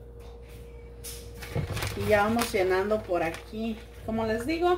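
A plastic sheet crinkles and rustles.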